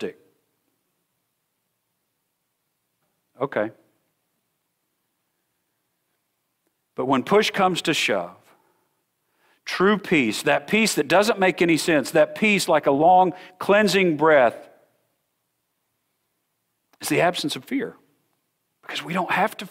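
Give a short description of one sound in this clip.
A middle-aged man speaks calmly and earnestly through a microphone, with pauses.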